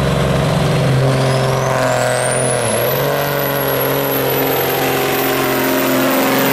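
A turbo whistles, rising sharply in pitch.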